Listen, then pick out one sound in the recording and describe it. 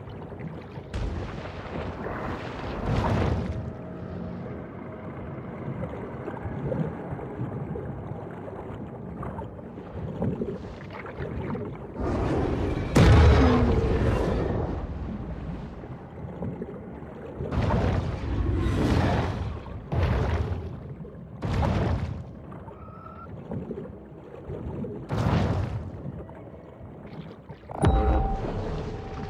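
Water rushes and rumbles underwater.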